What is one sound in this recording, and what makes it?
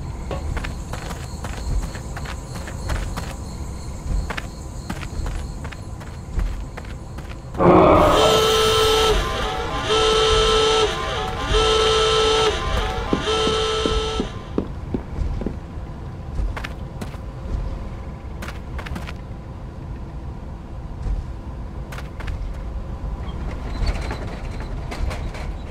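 Footsteps rustle through grass and then thud on a wooden floor.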